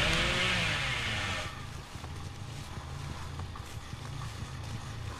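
Footsteps rustle through dry cornstalks.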